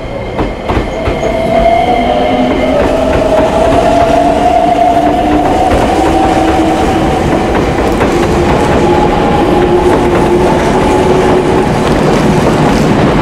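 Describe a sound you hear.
A train's motor whines as it moves.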